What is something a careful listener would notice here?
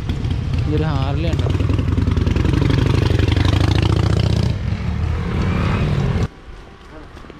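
A motorcycle engine idles close by, then cuts off abruptly.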